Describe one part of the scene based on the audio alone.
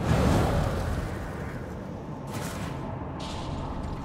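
Heavy wings beat.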